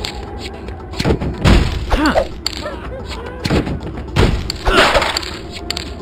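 Objects smash apart with loud crashes.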